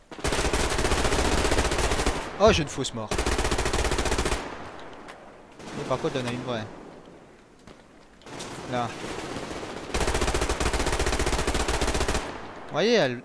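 A gun fires in rapid automatic bursts.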